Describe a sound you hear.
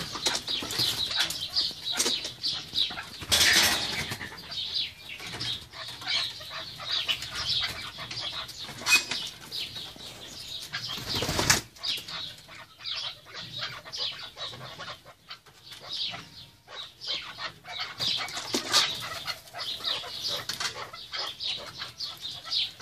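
Partridges call with repeated high chirps and clucks.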